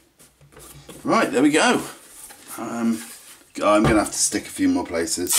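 A wooden box scrapes and thumps as it is turned over on a hard surface.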